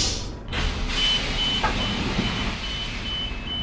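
A pulsing beep sounds while the doors are open.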